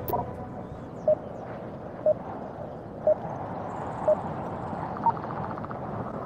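A countdown timer beeps once each second.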